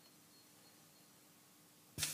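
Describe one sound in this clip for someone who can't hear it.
A needle drops onto a spinning record with a soft thud.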